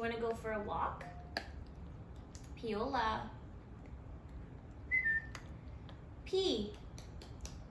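A puppy gnaws on a chew stick with small clicks and crunches.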